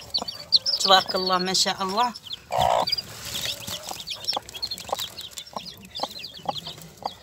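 Many small chicks peep and cheep in quick high chirps.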